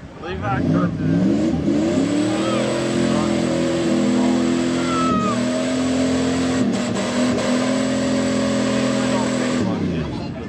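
Tyres spin and churn through thick mud.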